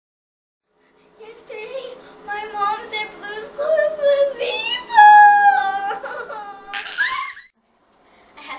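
A young girl speaks expressively close by.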